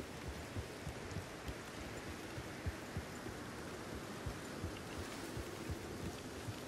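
A horse's hooves thud steadily at a trot on soft ground.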